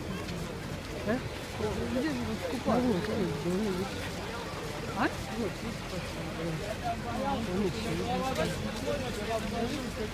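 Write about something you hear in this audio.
Men's voices call out loudly nearby.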